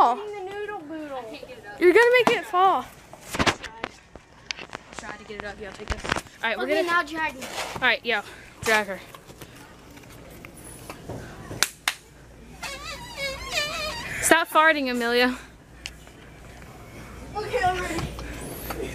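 Young girls talk and laugh excitedly close by.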